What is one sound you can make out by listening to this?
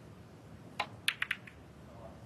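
Snooker balls click together.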